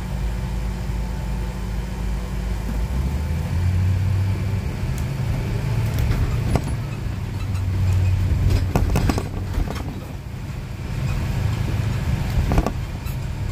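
A car drives along a street, heard from inside as a low rumble.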